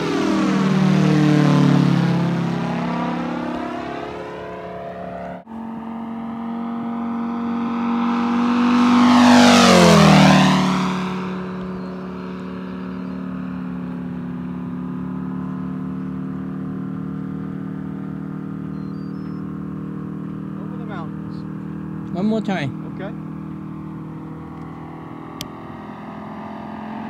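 A propeller plane's engine drones overhead, roaring loudly as it swoops past and its pitch falls away.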